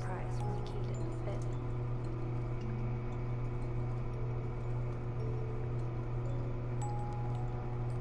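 A music box plays a tinkling tune.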